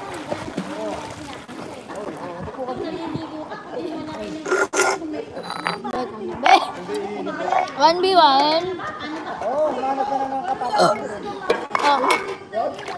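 Young women chat and laugh nearby.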